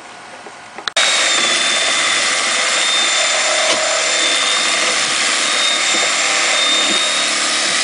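A wooden board creaks and scrapes as a man pries it loose.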